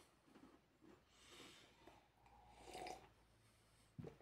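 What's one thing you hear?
A man sips a drink and swallows.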